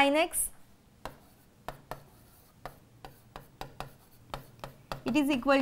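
A pen taps and clicks against a board.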